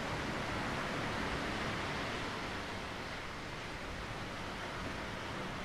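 Waves wash steadily onto a rocky shore outdoors.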